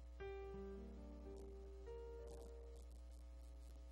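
A keyboard plays a few soft notes.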